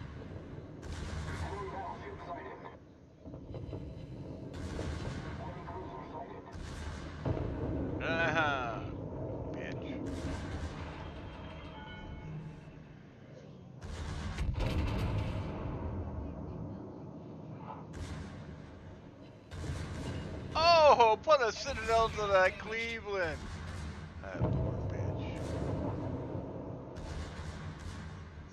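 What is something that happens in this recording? Naval guns boom and shells explode.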